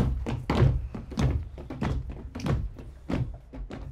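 Feet shuffle and tap on a wooden floor as people dance.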